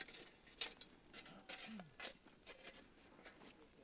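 Metal casings knock and clink against each other.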